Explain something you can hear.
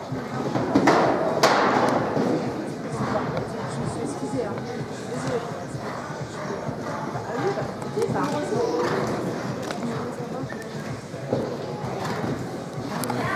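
A horse canters with muffled hoofbeats on soft ground in a large echoing hall.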